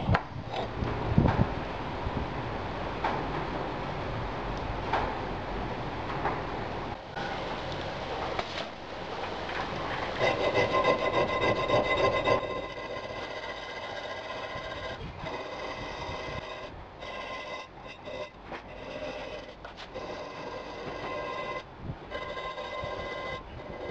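A metal file rasps back and forth against metal.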